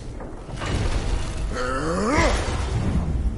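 A huge creature lets out a loud, rising roar.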